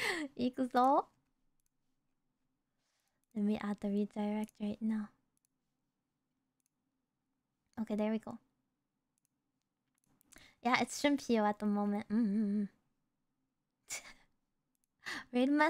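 A young woman speaks playfully and cutely into a close microphone, in short bursts.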